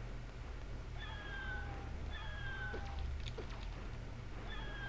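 Winged creatures shriek in bursts.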